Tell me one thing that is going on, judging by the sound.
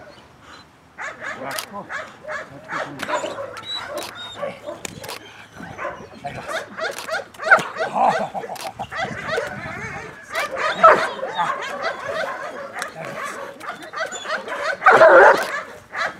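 A dog barks and growls loudly.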